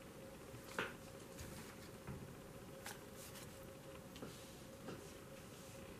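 Cards are laid softly one by one on a cloth-covered table.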